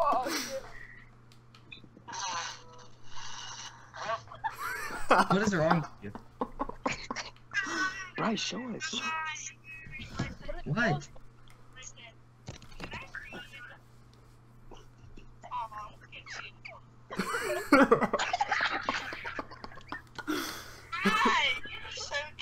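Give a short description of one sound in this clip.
Teenage boys laugh loudly over an online call.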